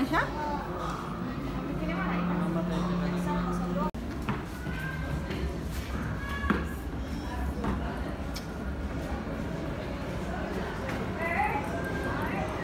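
A crowd of adults and children murmurs and chatters in a large echoing hall.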